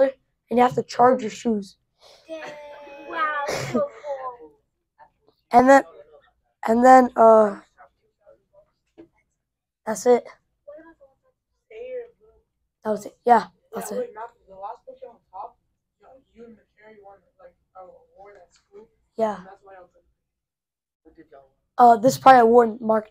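A young boy talks to a class, with pauses between phrases.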